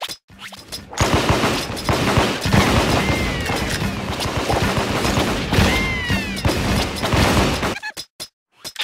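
Game explosions boom.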